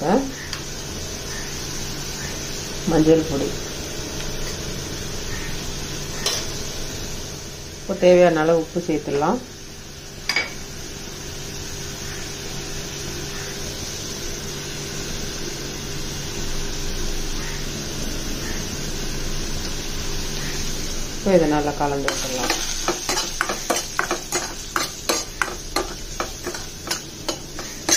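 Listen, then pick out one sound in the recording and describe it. Onions sizzle softly in a hot pan.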